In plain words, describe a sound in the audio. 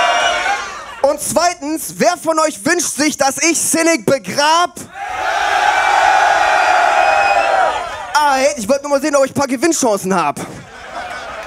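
A man raps forcefully through a microphone.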